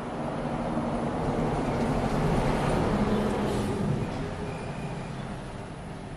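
Leaves rustle softly close by.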